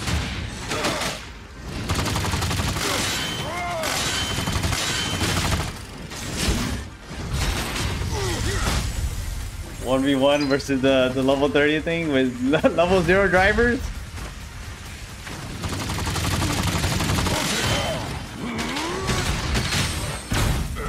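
Explosions and heavy blasts boom in quick bursts.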